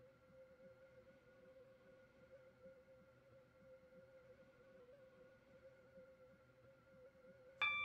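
A train's electric motor hums steadily as it runs along the track.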